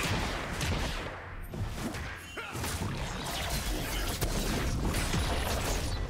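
Game spell and weapon effects crackle and clash in a busy fight.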